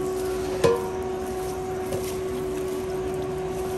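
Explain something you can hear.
Wet pickle slices squelch and slap as they are tipped into a pan.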